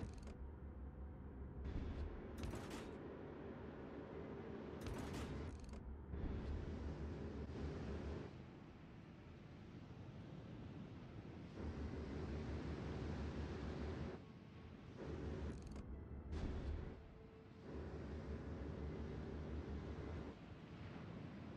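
Waves wash against a ship's hull.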